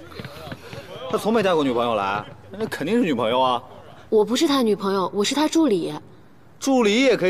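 Several young men talk excitedly.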